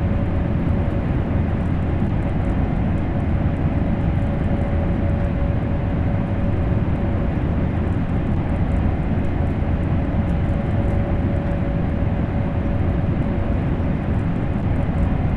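A train's engine hums with a steady tone.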